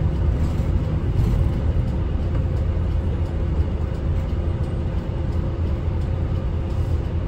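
Traffic passes by outside, muffled through the windows.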